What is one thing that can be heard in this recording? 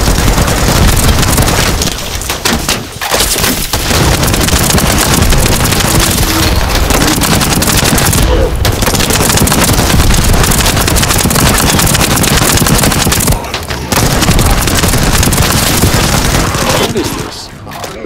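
Automatic gunfire rattles rapidly and loudly.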